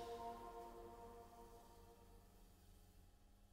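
Cymbals on a drum kit ring out and slowly fade away.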